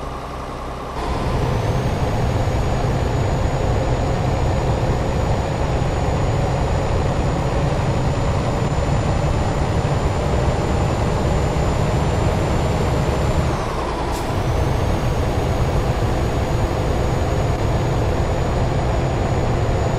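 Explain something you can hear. Tyres roll over the road with a steady hiss.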